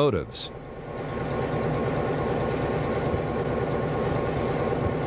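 A diesel locomotive engine idles with a steady rumble.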